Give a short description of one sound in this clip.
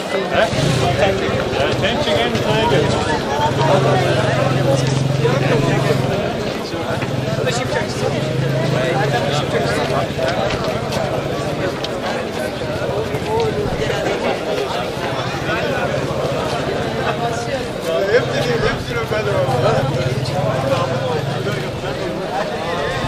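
A crowd of men chatters and murmurs close by outdoors.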